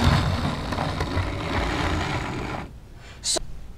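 A model train rumbles and clatters along its track, then stops.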